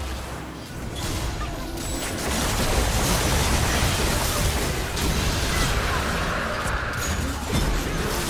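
Spell effects crackle and blast in a fast game fight.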